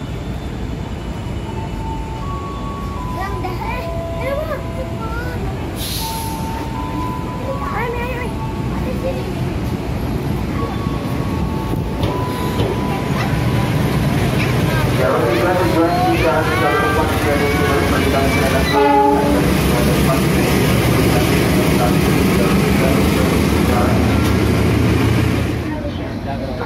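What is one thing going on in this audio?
A train rumbles in and rolls past close by.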